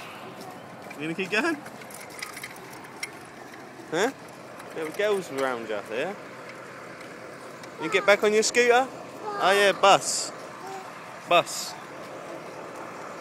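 A small child babbles and chatters close by.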